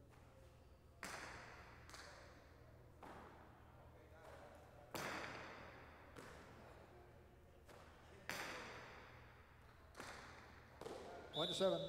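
A hard ball smacks loudly against a wall in a large echoing hall.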